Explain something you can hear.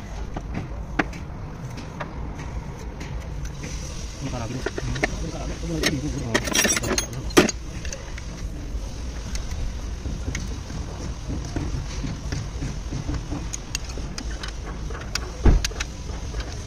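Metal tools clink and knock against metal.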